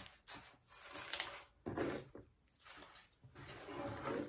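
Crinkled paper shred rustles under fingers.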